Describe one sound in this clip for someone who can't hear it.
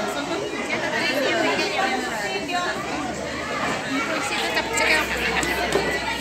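A woman talks to children close by.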